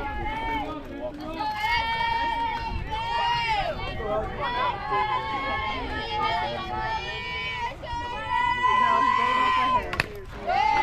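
A group of young women chant and cheer loudly nearby.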